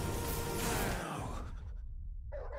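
A magical energy blast bursts with a loud crackling roar.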